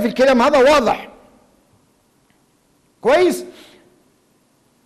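A man speaks forcefully into a microphone in short bursts.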